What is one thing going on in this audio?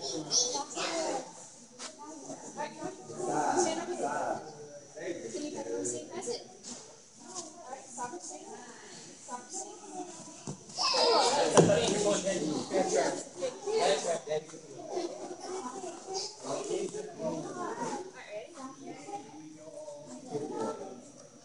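Young children chatter and shout in a large echoing hall.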